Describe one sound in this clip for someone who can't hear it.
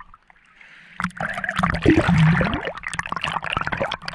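Air bubbles gurgle underwater.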